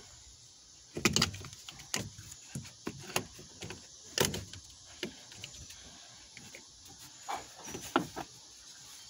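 Plastic parts click and knock as they are handled.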